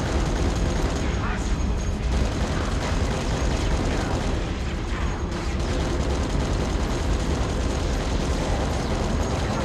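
A heavy machine gun fires in rapid, unbroken bursts.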